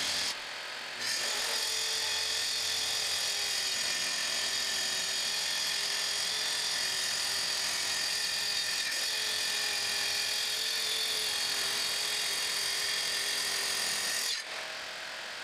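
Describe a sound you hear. A power saw whirs steadily as it cuts along a board.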